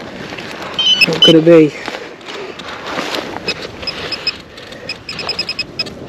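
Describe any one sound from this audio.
A trowel scrapes and digs into dry soil.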